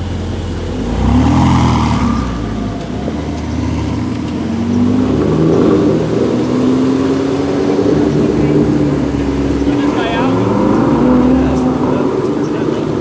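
A sports car engine revs loudly and roars away.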